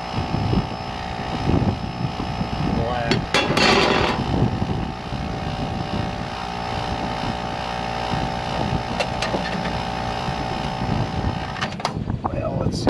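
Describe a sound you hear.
An electrical unit hums steadily, then shuts off.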